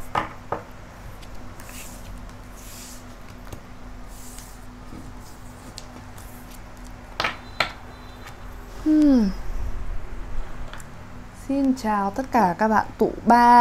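Cards slide and tap on a table.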